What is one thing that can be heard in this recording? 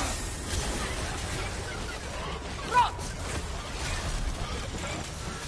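A heavy weapon whooshes and smashes with loud impacts.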